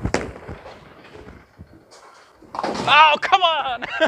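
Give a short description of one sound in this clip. A bowling ball rumbles down a wooden lane.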